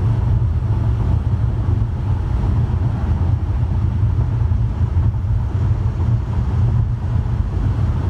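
A car engine hums steadily while driving on a highway.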